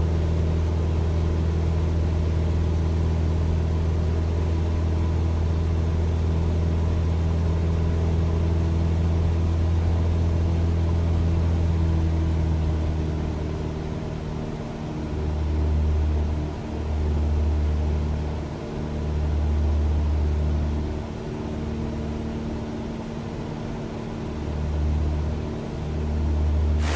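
A small propeller plane's engine drones steadily from inside the cockpit, its hum wavering in the second half.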